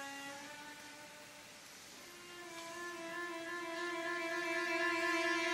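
A man sings loudly in an operatic voice, holding a long rising note.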